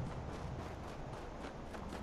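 Electric sparks crackle sharply.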